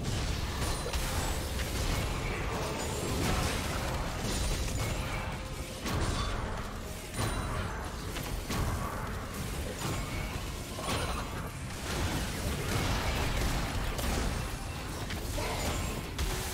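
Magic spells blast and crackle in a fast video game fight.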